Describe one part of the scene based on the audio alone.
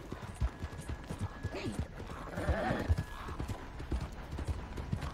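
A horse's hooves thud steadily on a dirt track.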